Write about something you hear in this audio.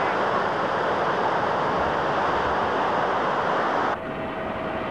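Waves crash and roll onto a beach nearby.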